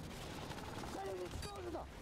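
A rifle fires a single loud shot.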